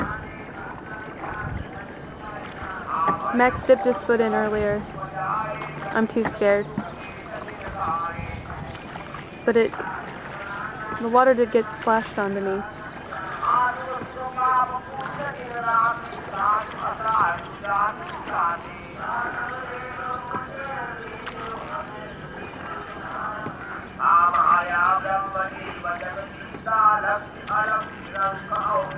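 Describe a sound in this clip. Wooden oars creak and splash in the water.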